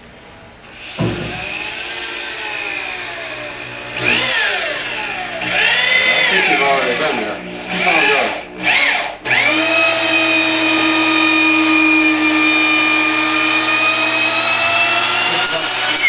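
An electric drill whirs into wood, speeding up and slowing down.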